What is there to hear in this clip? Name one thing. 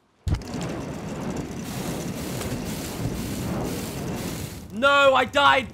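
A flamethrower roars steadily.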